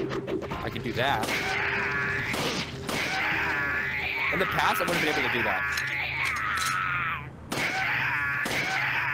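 A young man talks with animation through a headset microphone.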